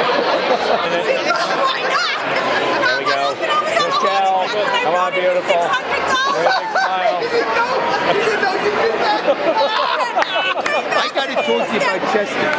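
A woman talks animatedly close by.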